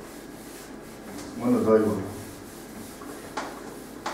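A felt eraser rubs across a blackboard.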